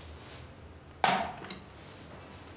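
A metal tray clinks down onto a wooden table.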